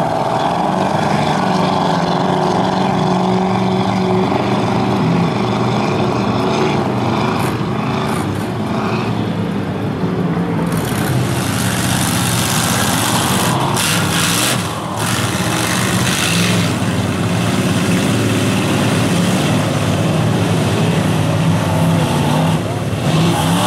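A truck engine roars loudly as it revs through deep mud.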